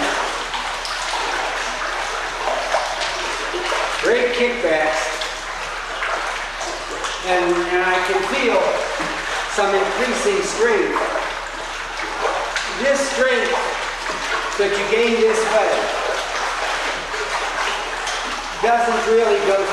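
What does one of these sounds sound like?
Water splashes and sloshes as a man wades through a pool.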